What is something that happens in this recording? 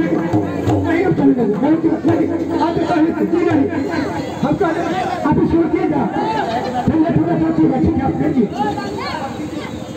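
Men sing and chant loudly outdoors.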